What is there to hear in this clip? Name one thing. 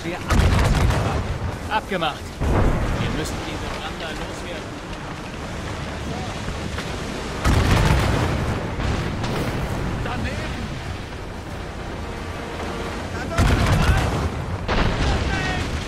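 Mortar shots boom heavily from a ship.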